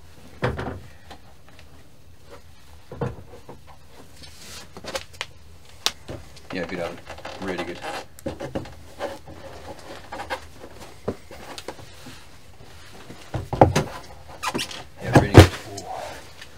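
Shoes and clothing scrape and knock against wood and brick.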